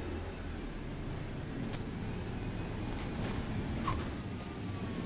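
A single-decker diesel bus engine drones, heard from inside the moving bus.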